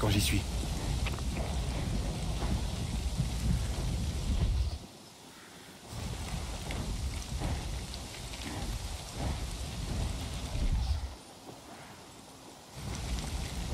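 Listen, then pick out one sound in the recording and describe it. Strong wind roars and rushes past in heavy gusts.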